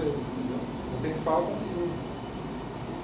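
A man speaks calmly from across a room.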